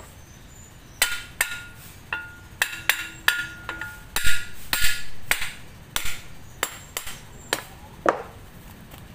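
A mallet knocks sharply on metal, each blow ringing briefly.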